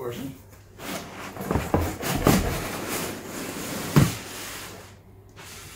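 Cardboard scrapes and rustles as a box lid slides up.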